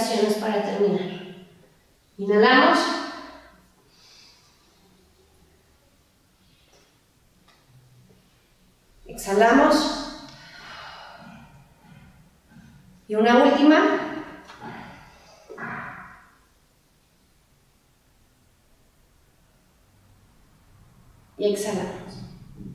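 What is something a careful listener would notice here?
A woman speaks calmly and clearly into a close microphone, giving instructions in short bursts.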